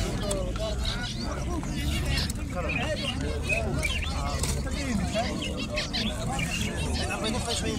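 Many small finches chirp and twitter busily close by.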